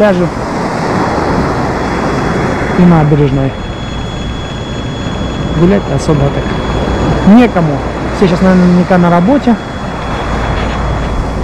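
Small waves wash onto a pebble beach and draw back.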